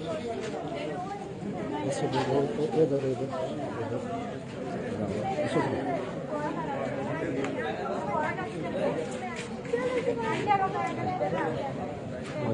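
Several young people talk among themselves outdoors.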